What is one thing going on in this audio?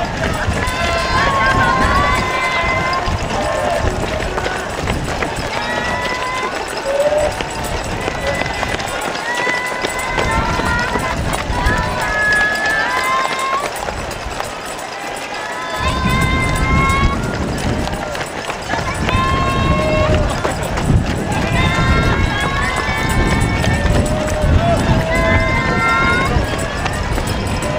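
Many runners' footsteps patter on the road.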